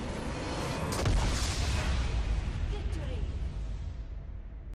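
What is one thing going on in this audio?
A large structure explodes with a deep, rumbling boom.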